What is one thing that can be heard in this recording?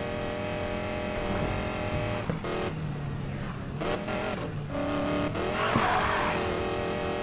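A car engine roars at high revs, shifting gears.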